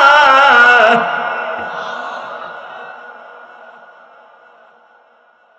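A man's chanting voice echoes and slowly fades away in a reverberant hall.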